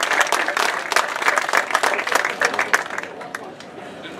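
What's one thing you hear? An audience claps and applauds outdoors.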